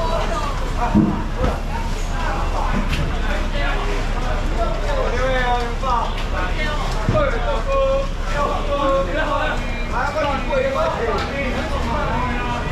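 Plastic tubs knock and scrape.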